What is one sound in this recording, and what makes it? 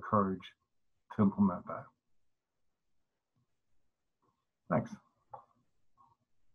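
A middle-aged man speaks calmly and closely into a microphone, in short bursts.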